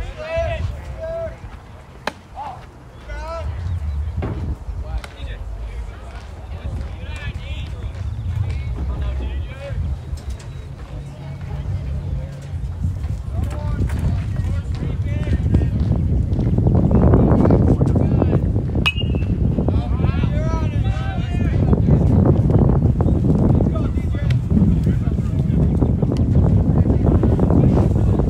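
Wind blows across the microphone outdoors, growing stronger.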